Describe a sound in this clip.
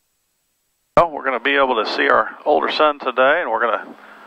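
A man speaks calmly over a headset radio.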